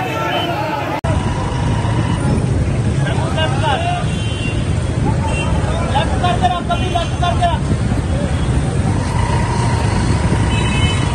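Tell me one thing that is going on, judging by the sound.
A crowd of men shouts outdoors.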